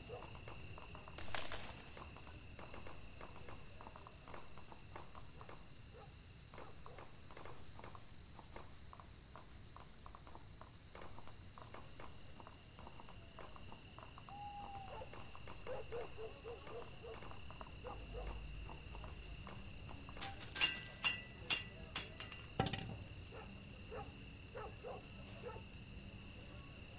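Quick footsteps tap on soft ground.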